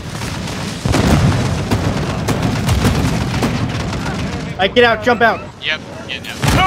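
Explosions roar close by.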